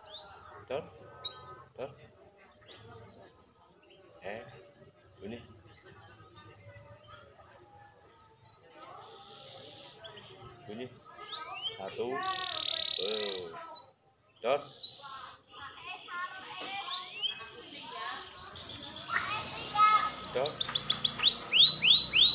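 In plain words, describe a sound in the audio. A small bird chirps and sings close by, getting louder and busier.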